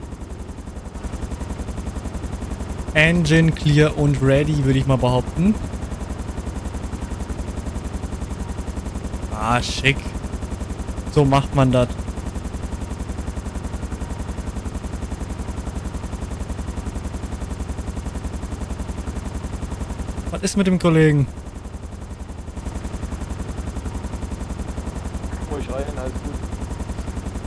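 A helicopter's rotor hums and thrums steadily nearby.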